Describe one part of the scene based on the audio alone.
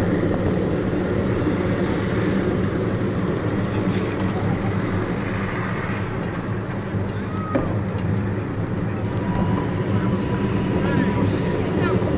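Wind rumbles and buffets steadily while riding fast on a bicycle.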